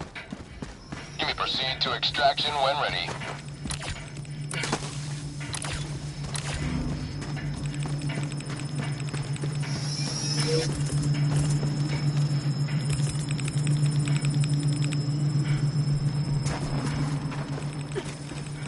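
A machine hums steadily and loudly.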